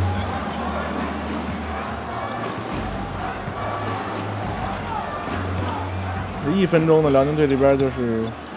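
A crowd murmurs steadily in a large echoing arena.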